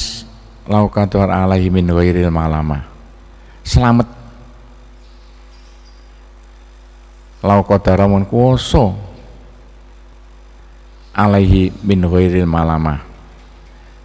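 A man recites in a slow, melodic chanting voice, in bursts with pauses between them.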